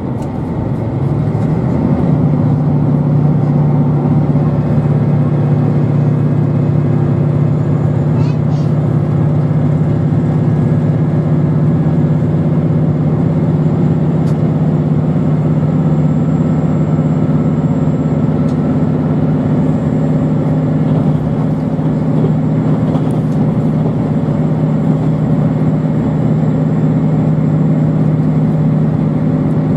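A train hums and rumbles steadily along the tracks, heard from inside a carriage.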